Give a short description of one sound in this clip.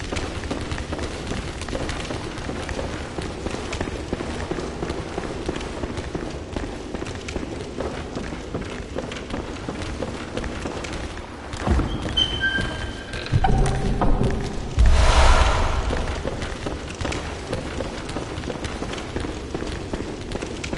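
Footsteps run over a stone floor.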